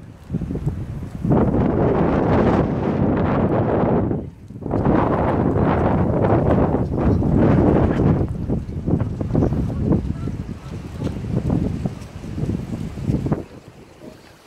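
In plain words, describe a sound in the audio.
Wind gusts against the microphone outdoors.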